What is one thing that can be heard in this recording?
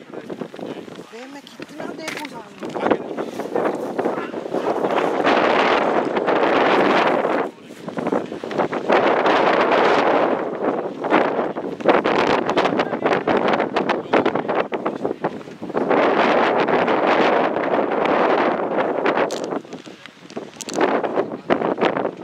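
Wind gusts loudly across the microphone outdoors.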